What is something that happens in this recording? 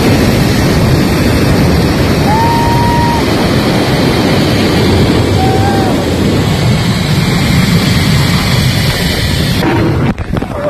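Wind rushes hard over the microphone.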